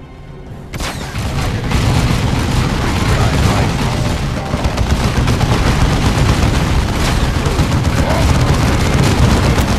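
Rapid gunfire rattles amid a noisy battle.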